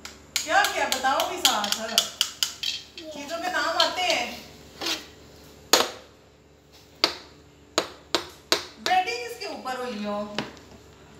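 A plastic toy taps and knocks against a plastic cup.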